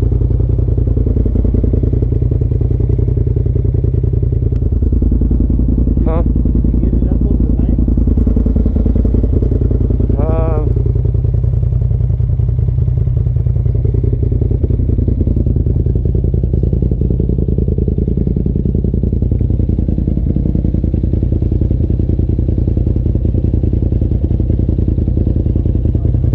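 An off-road vehicle's engine rumbles steadily close by.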